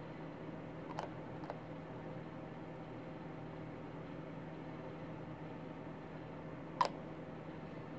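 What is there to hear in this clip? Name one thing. Small plastic model parts click together.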